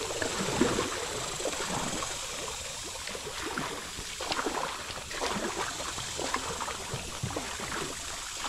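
Wind rushes across a microphone outdoors.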